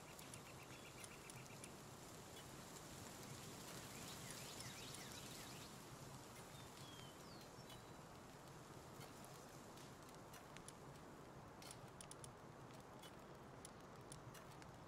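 Soft menu clicks tick as selections change.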